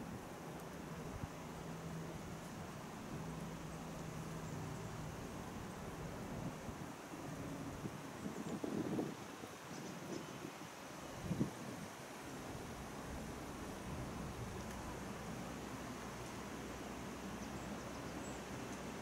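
Wind blows steadily outdoors through leafy trees.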